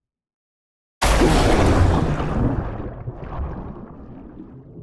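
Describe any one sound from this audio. Air bubbles rush loudly upward in a sudden burst.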